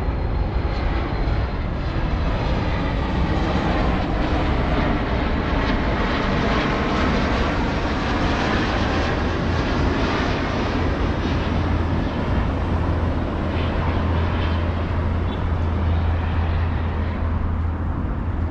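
A low-flying airliner roars overhead, then fades into the distance.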